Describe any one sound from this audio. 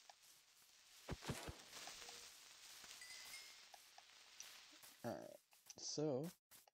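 Soft footsteps crunch on grass.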